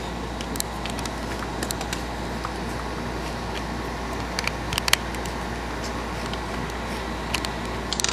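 A plug clicks into a small handheld device.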